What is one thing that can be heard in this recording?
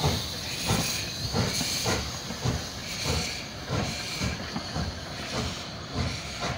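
Steam hisses from a locomotive.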